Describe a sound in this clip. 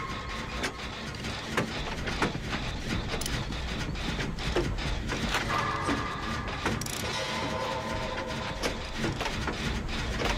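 A machine rattles and clanks as it is worked on by hand.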